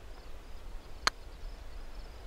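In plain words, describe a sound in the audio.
A putter taps a golf ball with a sharp click.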